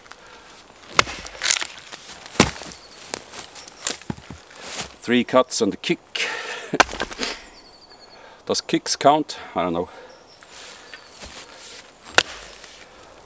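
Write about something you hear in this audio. An axe chops into wood with sharp thuds.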